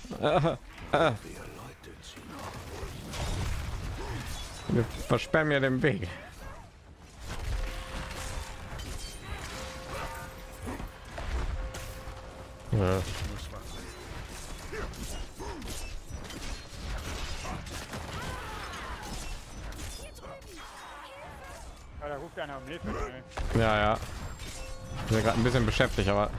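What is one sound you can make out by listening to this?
Heavy blows thud and crash in a fight.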